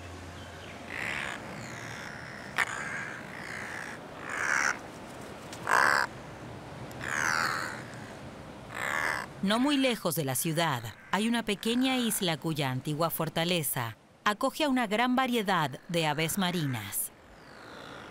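Seabirds call with harsh, rising and falling croaks.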